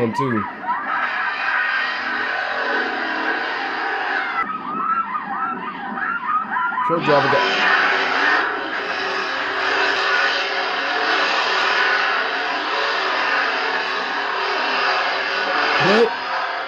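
A chainsaw roars and revs.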